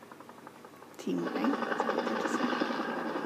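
A helicopter's rotor thumps loudly.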